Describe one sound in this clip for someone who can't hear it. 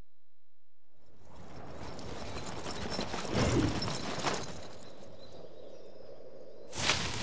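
Leafy branches crash and rustle as a person drops through them.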